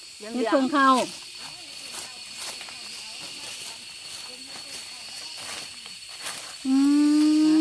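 Dry leaves rustle and crunch as someone moves through leaf litter.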